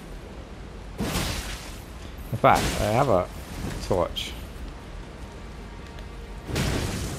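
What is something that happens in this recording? A sword swings and strikes a creature with heavy thuds.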